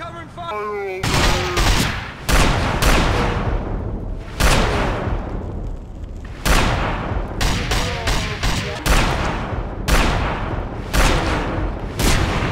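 Gunshots ring out loudly in repeated bursts with echoes.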